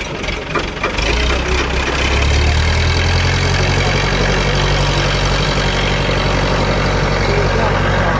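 A tractor engine idles nearby with a low, steady rumble.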